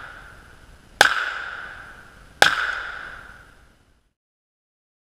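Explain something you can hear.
A handgun fires two shots that echo across open ground outdoors.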